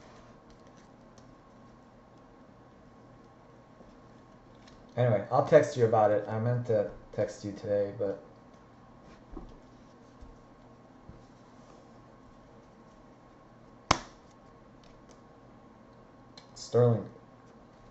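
Trading cards rustle and slide in hands.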